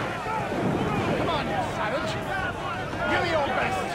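A man shouts a taunt.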